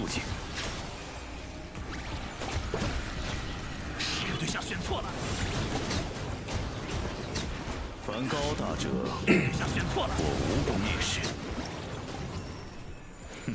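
Loud battle effects crash and whoosh with bursts and zaps.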